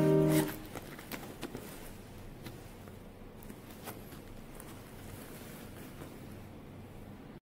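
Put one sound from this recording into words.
Hands rustle and handle a leather bag.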